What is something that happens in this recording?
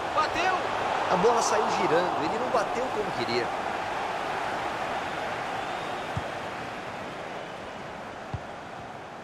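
A large stadium crowd roars steadily and slowly fades.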